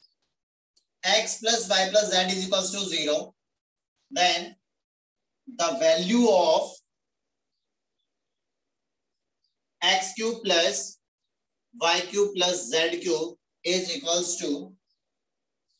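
A young man speaks calmly and clearly, explaining in short phrases.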